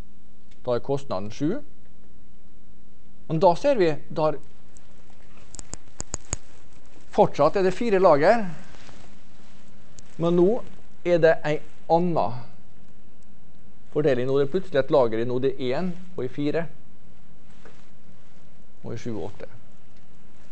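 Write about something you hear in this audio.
A man lectures calmly in a large room, heard through a microphone, in short phrases with pauses.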